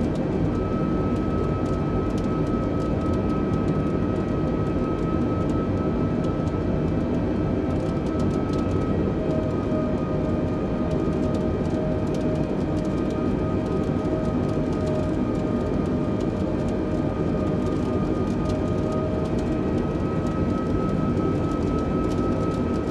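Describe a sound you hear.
Jet engines roar steadily, heard from inside an airliner cabin.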